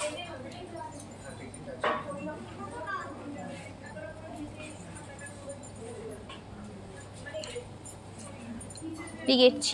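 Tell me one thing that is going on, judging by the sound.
A metal chain clinks softly as a hand turns it.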